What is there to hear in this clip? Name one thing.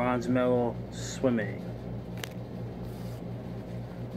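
A card rustles as it is handled.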